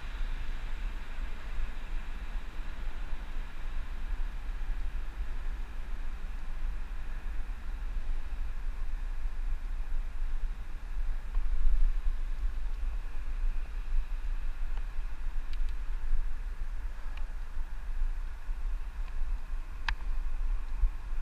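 Bicycle tyres hum on the road surface.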